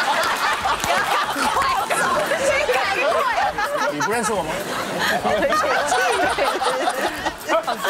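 Several people laugh together.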